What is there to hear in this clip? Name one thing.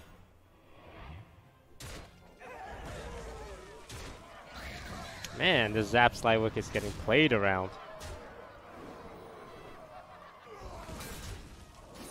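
Game sound effects crash and chime.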